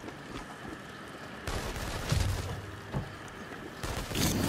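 Hands and feet scrape and thump while climbing a wall.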